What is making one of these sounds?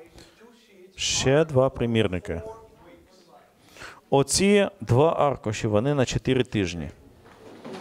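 A middle-aged man speaks with animation into a microphone over a loudspeaker in a large room.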